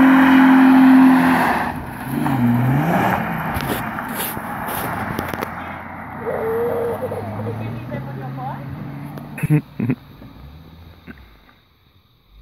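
A car speeds past and fades into the distance.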